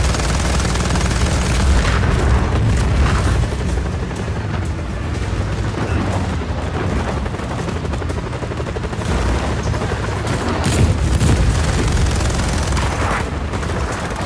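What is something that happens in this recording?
Explosions blast and crash.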